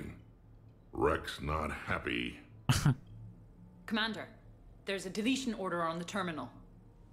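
A young woman speaks urgently.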